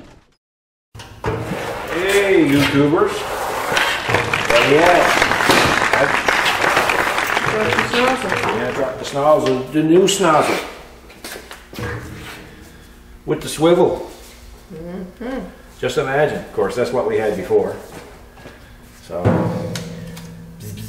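A middle-aged man talks calmly and close up.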